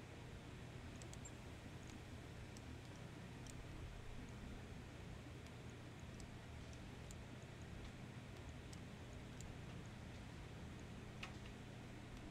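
Soft, short clicks sound now and then.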